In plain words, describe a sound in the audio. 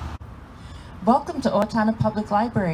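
An older woman speaks calmly and clearly into a handheld microphone.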